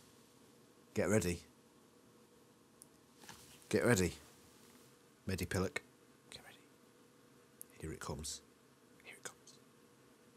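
A man speaks calmly in short phrases close to a microphone.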